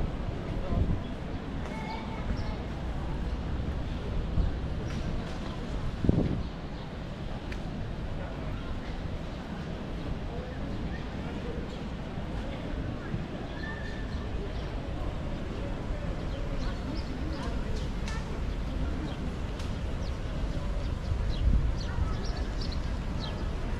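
A crowd murmurs and chatters outdoors in a wide open square.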